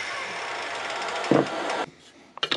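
A block of wood knocks onto a bench.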